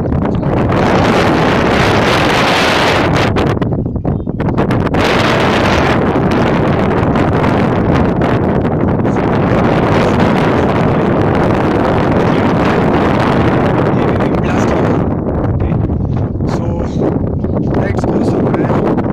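Strong wind gusts and roars into a microphone outdoors.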